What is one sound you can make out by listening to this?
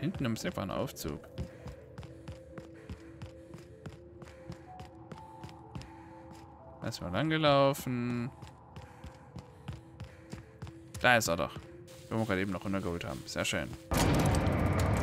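Footsteps tread steadily over hard ground.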